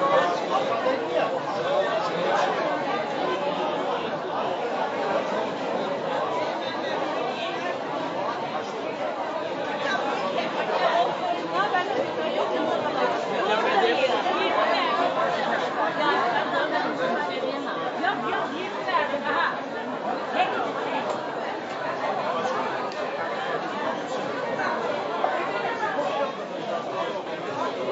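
A crowd of men and women chatters all around in a large, busy indoor space.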